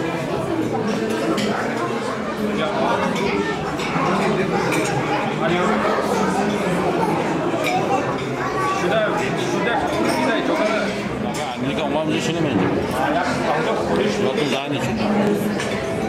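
Several adult men chatter and talk over one another nearby.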